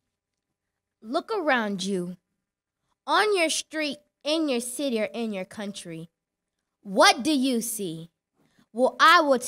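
A girl speaks clearly into a microphone, heard through a loudspeaker.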